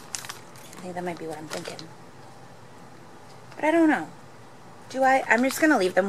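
Plastic binder sleeves crinkle and rustle as pages are turned.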